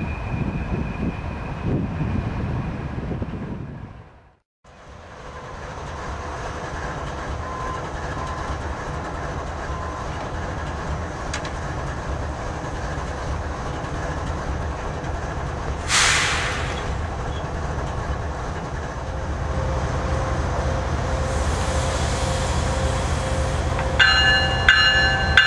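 A freight train rumbles along the tracks.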